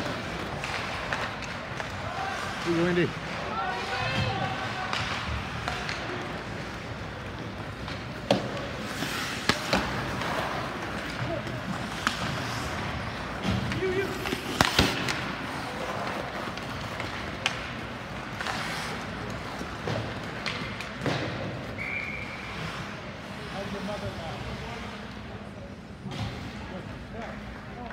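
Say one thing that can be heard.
A crowd of spectators murmurs and calls out in a large echoing rink.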